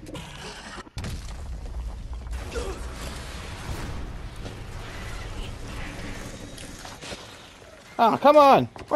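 An explosion booms and rumbles low.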